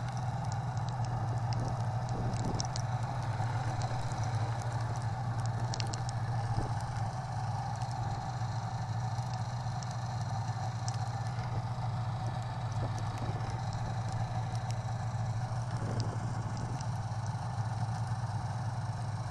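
A snowmobile engine idles with a steady low hum close by.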